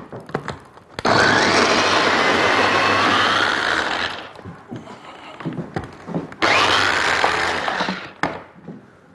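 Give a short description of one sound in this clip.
A food chopper whirs loudly in short bursts.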